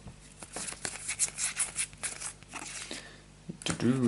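Trading cards slide and flick against each other as they are handled.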